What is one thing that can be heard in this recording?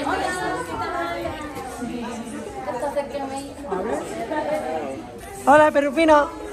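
Women talk and exclaim with excitement close by.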